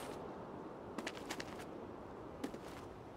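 Light footsteps patter on soft ground.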